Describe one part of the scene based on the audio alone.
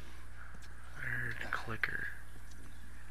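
A man swears under his breath.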